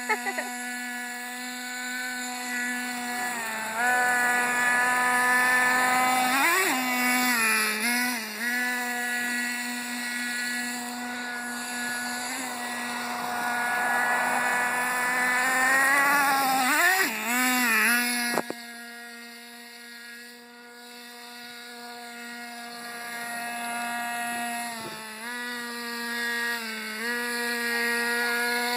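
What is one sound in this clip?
A toy car's electric motor whines steadily, dipping and rising in pitch now and then.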